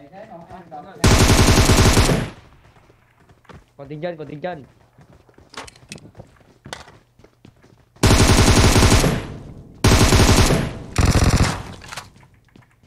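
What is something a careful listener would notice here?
Loud bursts of automatic gunfire ring out in quick succession.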